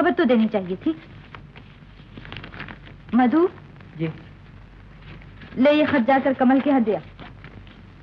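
A young woman speaks calmly on an old film soundtrack.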